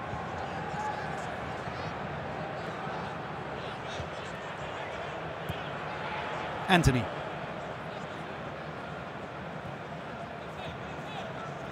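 Men shout and call out to each other across a large, empty, echoing stadium.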